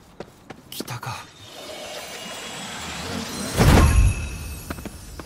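A magical whoosh swells as glowing spirits are drawn in.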